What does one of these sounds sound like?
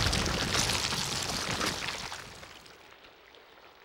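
A heavy rumbling crash roars and fades away.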